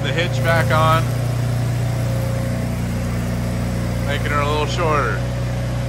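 An electric welder buzzes and crackles steadily.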